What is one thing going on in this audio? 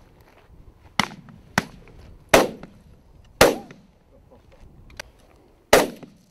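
Shotguns fire in sharp, single bangs across open ground.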